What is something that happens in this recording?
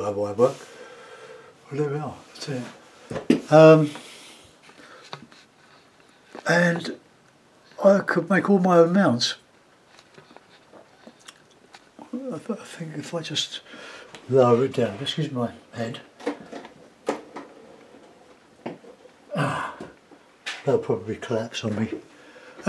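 A middle-aged man talks calmly into a close microphone.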